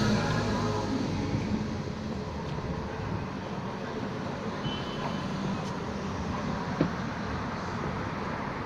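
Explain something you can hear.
Shoes scuff and tap on pavement.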